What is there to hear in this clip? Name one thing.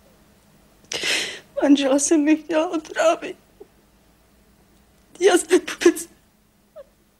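A middle-aged woman sobs and cries.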